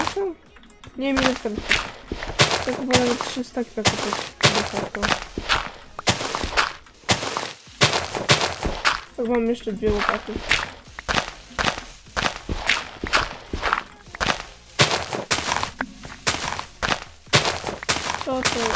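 A shovel digs into dirt with quick, repeated crunching thuds.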